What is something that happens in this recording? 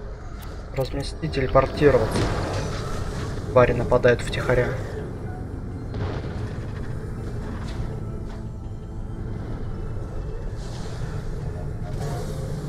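A hover vehicle's engine hums steadily.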